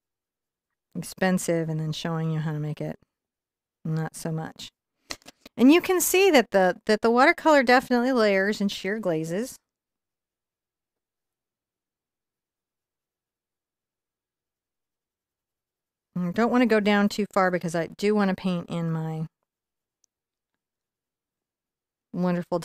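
A woman talks calmly and warmly into a close microphone, in bursts with pauses.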